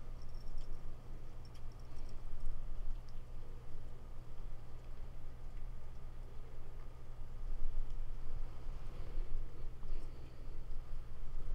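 A small bell jingles faintly on a moving cat's collar.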